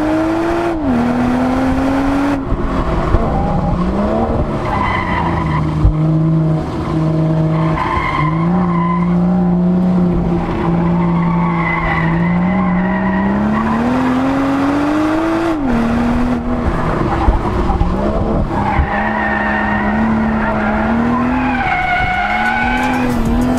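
A car engine revs hard inside the cabin, rising and falling in pitch through gear changes.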